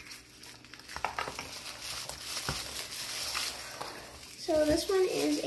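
Wrapping crinkles in someone's hands.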